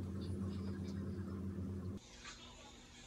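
A cat crunches dry food from a bowl.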